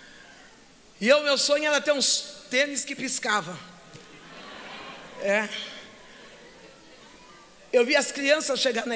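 An elderly woman speaks with animation through a microphone in a large echoing hall.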